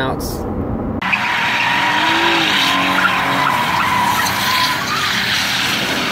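A car engine revs hard outdoors.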